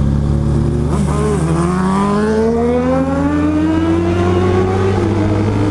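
A motorcycle engine revs up sharply, climbing steadily in pitch.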